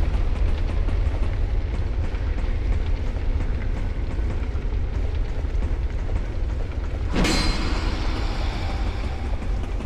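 Armoured footsteps clank on rungs while climbing a ladder.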